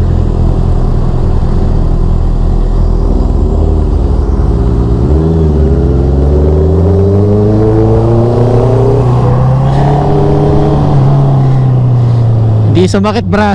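A motorcycle engine hums and rises in pitch as it speeds up.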